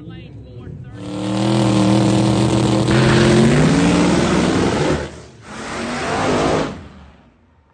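A drag racing car revs hard during a smoky burnout.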